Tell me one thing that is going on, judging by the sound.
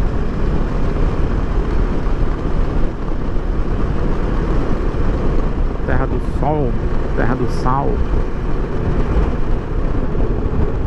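A motorcycle engine hums steadily underneath the wind.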